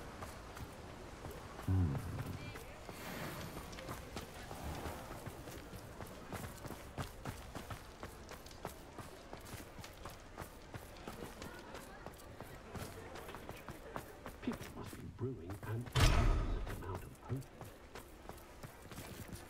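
Footsteps tap quickly on stone and snow.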